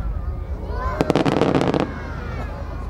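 Firework stars crackle after a burst.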